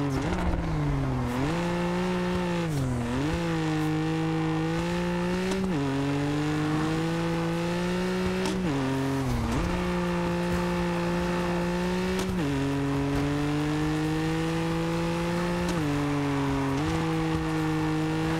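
A car engine revs hard, its pitch climbing and dropping sharply with each gear change.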